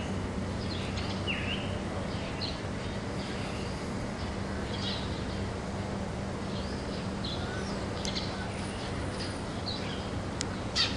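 A small bird chirps in short bursts outdoors.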